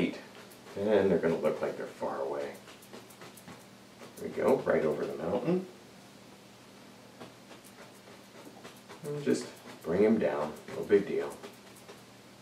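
A man talks calmly and close by, in short phrases with pauses.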